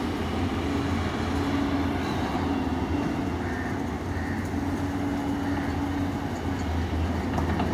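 An excavator's diesel engine rumbles steadily nearby.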